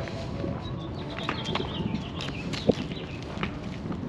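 Footsteps tap on concrete close by.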